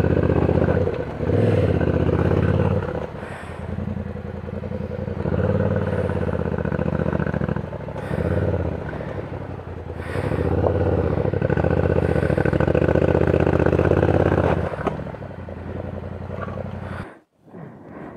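A motorcycle engine rumbles and revs close by.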